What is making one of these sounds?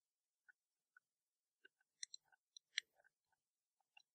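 A plastic plug clicks into a socket.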